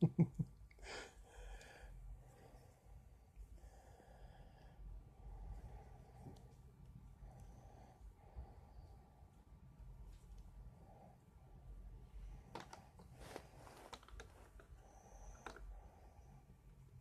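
Small plastic parts click and rattle as a toy is handled.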